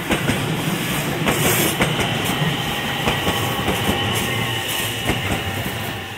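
Train brakes squeal with a steady high whine.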